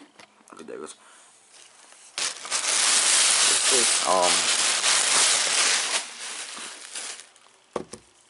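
A plastic bag rustles and crinkles loudly close by.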